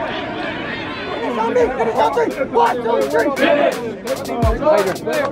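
Young men talk and shout close by.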